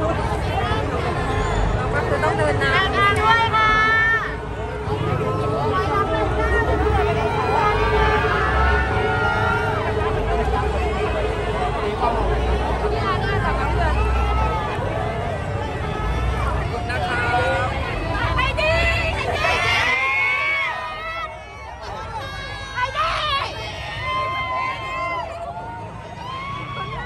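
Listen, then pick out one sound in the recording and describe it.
Men and women nearby talk and call out with excitement.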